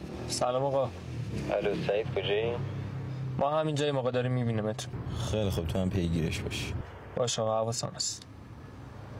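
A man speaks tensely and close by.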